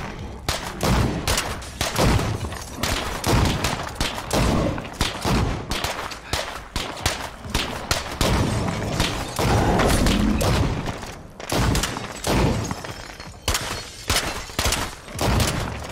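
Gunshots fire in quick, repeated bursts.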